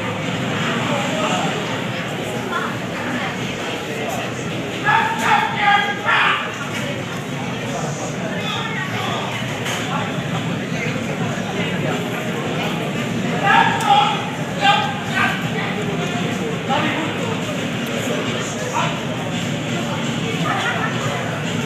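A crowd of young people chatters in a large echoing hall.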